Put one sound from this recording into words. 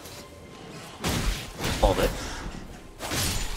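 A blade swishes and strikes with heavy thuds.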